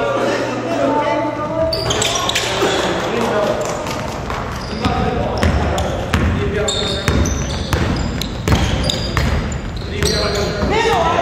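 Young players shout and call out across the hall.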